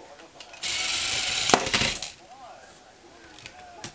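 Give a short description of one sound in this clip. A toy car clatters as a hand knocks it aside.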